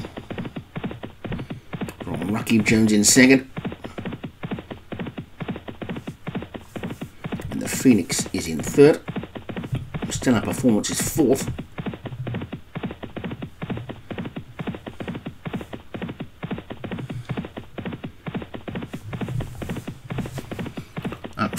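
Horses' hooves thud rapidly on turf in a gallop.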